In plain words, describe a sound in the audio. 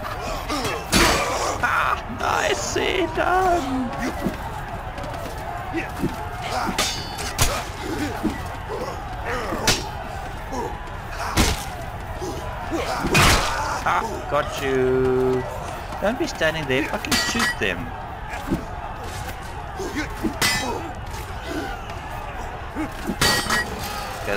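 Swords clash and clang with sharp metallic hits.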